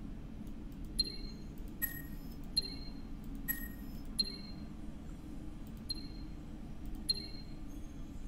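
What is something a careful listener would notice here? Short electronic blips sound as menu options are selected.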